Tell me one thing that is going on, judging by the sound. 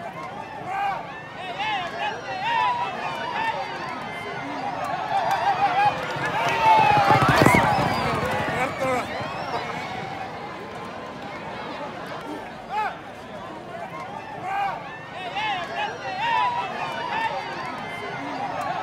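A crowd of men chatter and call out outdoors.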